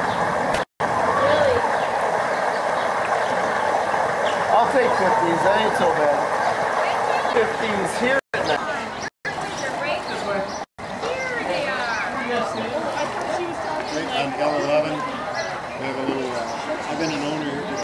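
Water splashes around swimmers in a pool.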